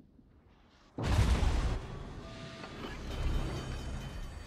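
Shells explode on a warship with a loud crackling roar.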